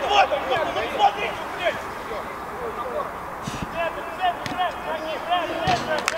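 Men shout across an outdoor pitch.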